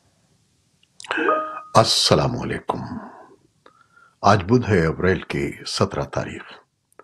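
An elderly man speaks calmly and clearly into a close microphone.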